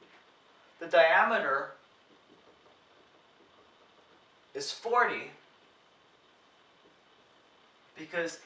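A young man speaks calmly, close by, in short phrases.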